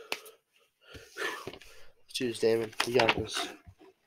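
Paper rustles as a sheet is lifted.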